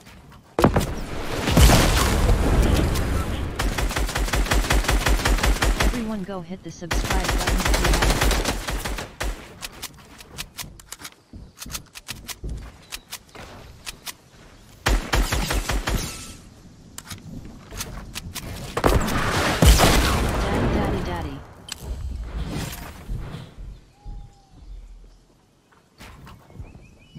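Wooden walls and ramps snap into place with quick clattering knocks in a video game.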